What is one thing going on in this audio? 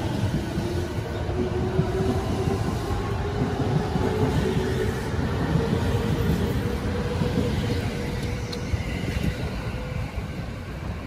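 An electric train motor hums with a slowly rising whine.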